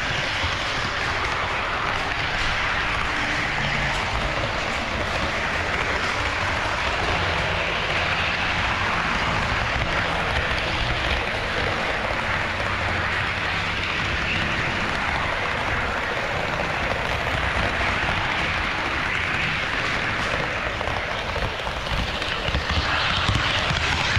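A small model train rolls along its track with a steady, close whirring rumble.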